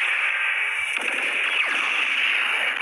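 A bright magical beam whooshes past.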